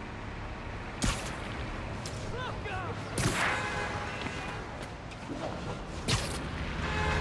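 A web line shoots out with a sharp whipping snap, again and again.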